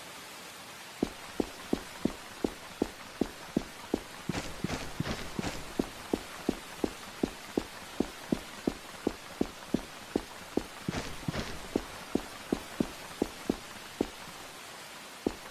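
Footsteps thud quickly and evenly on a carpeted floor.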